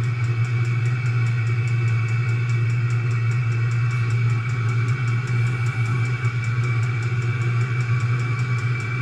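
A heater ticks rapidly and evenly.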